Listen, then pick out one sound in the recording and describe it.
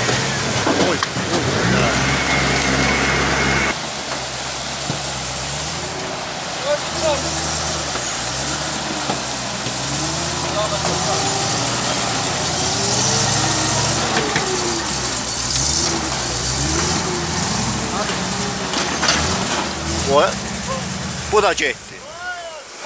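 A truck engine rumbles and revs nearby.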